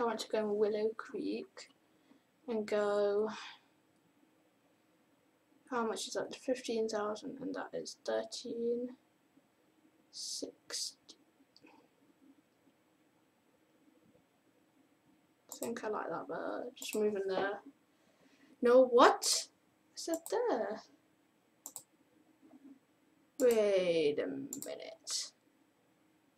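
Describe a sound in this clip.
A boy speaks into a close microphone with animation, in short bursts with pauses.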